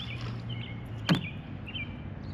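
A lure splashes into calm water.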